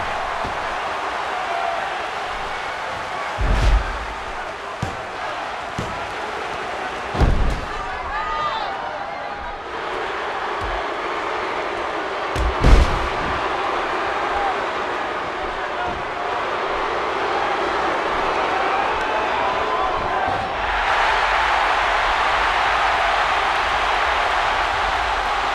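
A crowd cheers steadily in a large arena.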